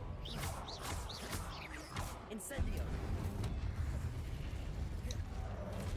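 Flames roar and burst.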